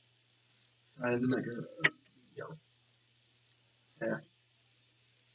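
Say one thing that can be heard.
A man speaks briefly and quietly nearby.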